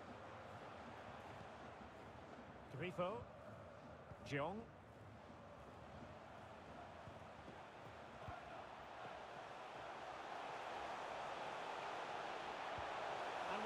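A large stadium crowd roars steadily, swelling louder toward the end.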